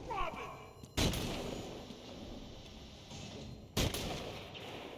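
Laser shots zap sharply.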